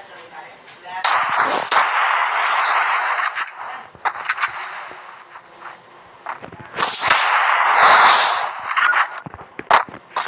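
A wall of ice bursts up from the ground with a loud rushing crackle.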